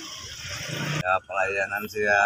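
An older man speaks close by.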